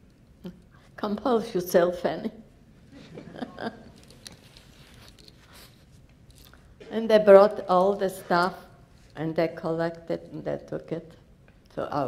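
An elderly woman speaks slowly, with long pauses.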